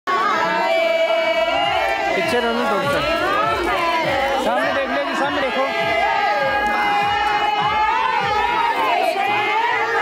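A group of women sing together loudly.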